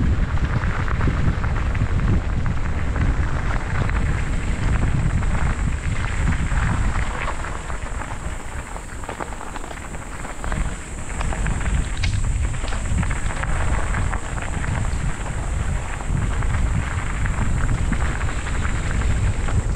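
Bicycle tyres crunch over gravel.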